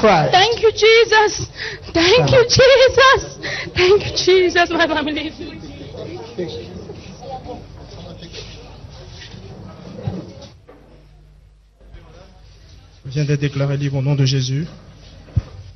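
A man speaks energetically into a microphone, heard through loudspeakers.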